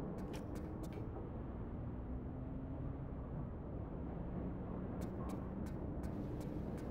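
Quick footsteps tap on a metal floor.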